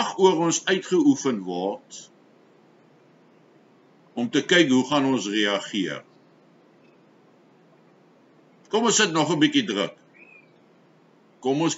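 An older man speaks calmly in short bursts, close to a microphone.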